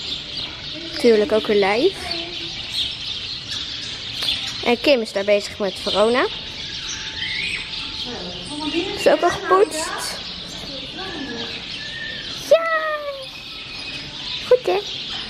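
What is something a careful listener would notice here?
A young woman talks brightly and playfully nearby.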